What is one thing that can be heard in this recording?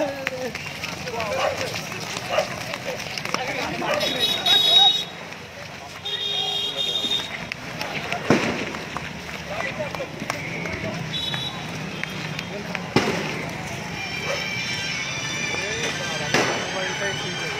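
A crowd of men shouts and calls out outdoors.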